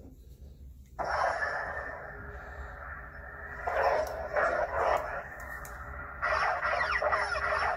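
A toy lightsaber hums and swooshes electronically.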